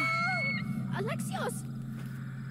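An eagle screeches sharply.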